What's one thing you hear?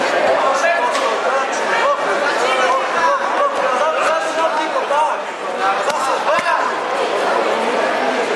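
A crowd shouts and cheers in an echoing hall.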